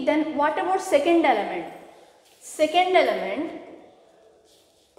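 A woman speaks clearly and with emphasis in an echoing room.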